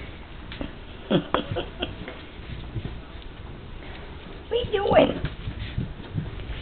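Puppies yelp and growl playfully.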